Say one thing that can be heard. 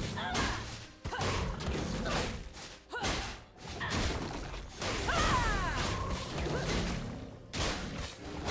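Game spell effects whoosh and crash in a quick fight.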